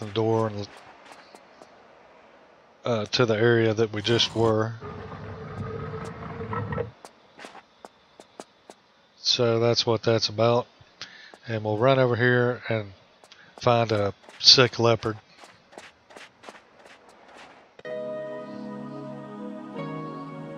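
Quick footsteps patter on snow and stone.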